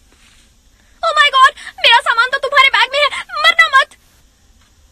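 A young woman sings close into a microphone.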